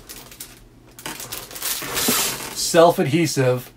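Plastic packaging crinkles in a man's hands.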